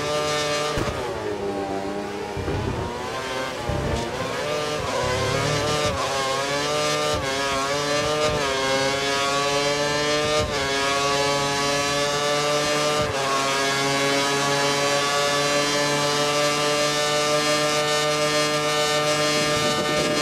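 A Formula One V8 engine screams at full throttle, shifting up through the gears.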